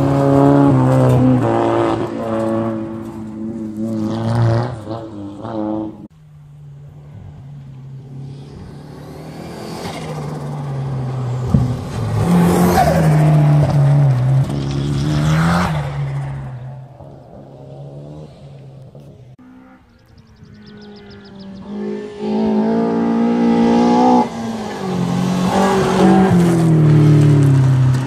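Tyres crunch and spray loose gravel.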